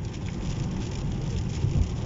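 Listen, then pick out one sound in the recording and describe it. Windshield wipers swish across glass.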